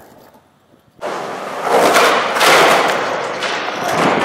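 Skateboard wheels roar across concrete in a large echoing space.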